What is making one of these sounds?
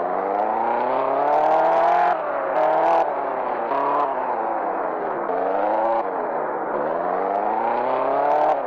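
A car engine revs up and down repeatedly.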